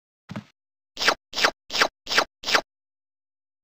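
Quick electronic blips sound one after another.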